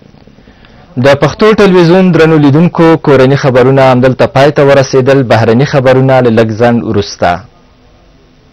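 A man speaks calmly and clearly into a close microphone, reading out.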